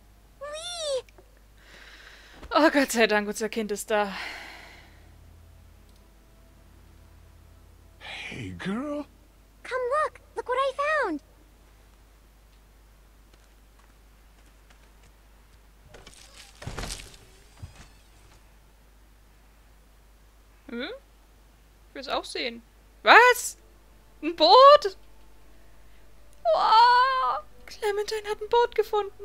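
A young girl speaks softly nearby.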